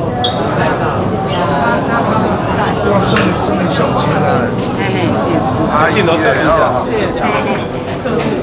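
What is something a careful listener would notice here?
A crowd of men and women talk and murmur close by.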